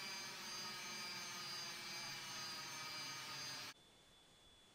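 A jet engine hums and whines steadily.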